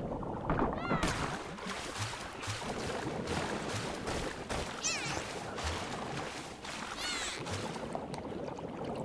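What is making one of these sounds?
Water splashes as a figure swims at the surface.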